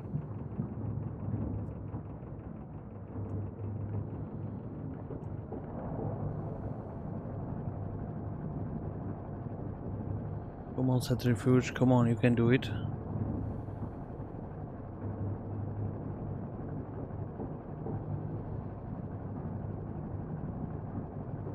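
A machine hums steadily and low.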